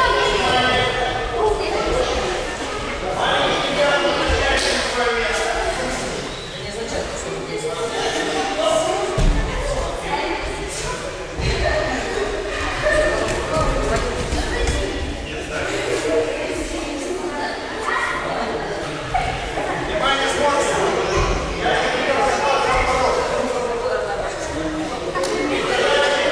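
Many children and adults chatter at once in a large echoing hall.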